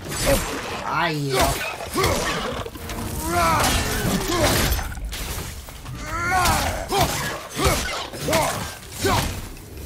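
An axe strikes a creature with heavy, thudding blows.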